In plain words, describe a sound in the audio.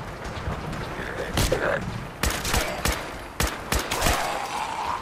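Creatures snarl and growl.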